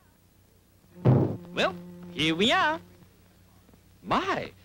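A cartoon bird speaks in a squawky, comic male voice.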